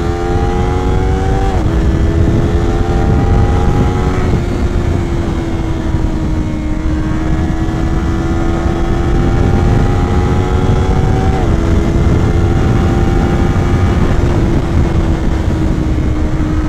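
A motorcycle engine revs up and shifts through gears, rising and dropping in pitch.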